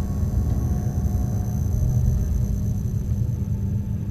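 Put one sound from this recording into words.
A metal door slides open.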